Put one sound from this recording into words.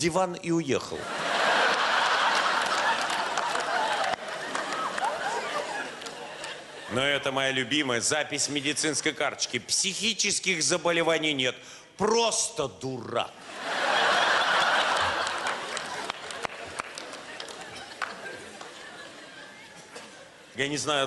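An audience laughs loudly.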